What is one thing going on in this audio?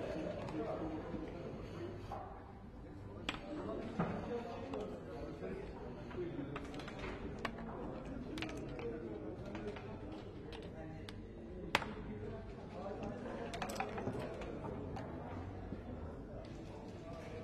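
Dice rattle in a cup and clatter onto the board.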